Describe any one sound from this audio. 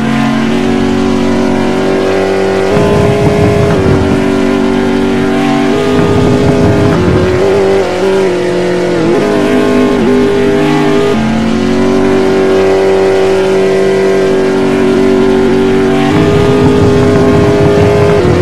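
A racing car engine roars steadily at high speed, dipping briefly in pitch as it slows.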